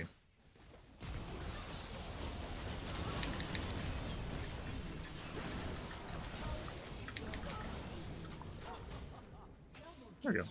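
Video game combat sounds clash and whoosh.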